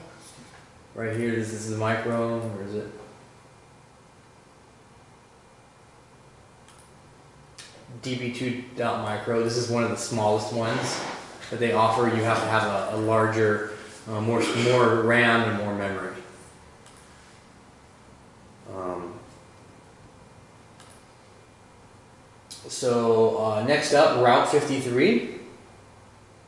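A man speaks calmly in a quiet room, pausing between phrases.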